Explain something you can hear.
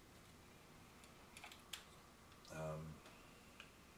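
A plastic model clicks softly as it is turned in a hand.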